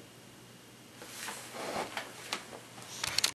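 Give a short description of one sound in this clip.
Fabric rustles close by as a man moves.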